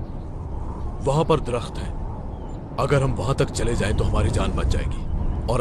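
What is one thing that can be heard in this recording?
A man speaks urgently and loudly, close by.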